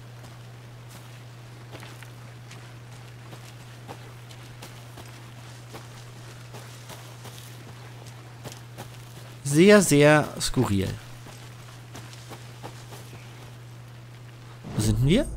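Footsteps crunch softly on a leafy forest floor.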